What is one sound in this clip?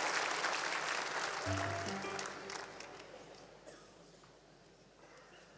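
A crowd applauds and cheers in a large hall, then fades.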